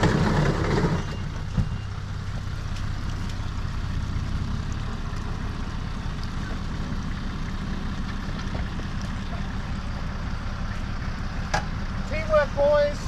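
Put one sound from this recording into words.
A truck engine idles steadily.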